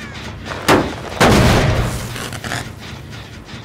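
A machine bangs loudly twice.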